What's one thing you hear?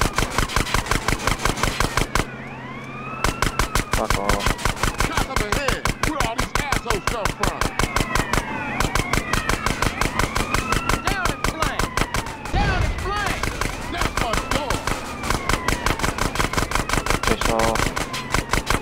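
A machine pistol fires in rapid bursts.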